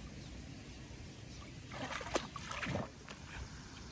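A child splashes while swimming in water.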